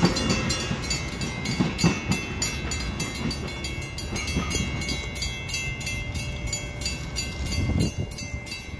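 A railroad crossing bell rings.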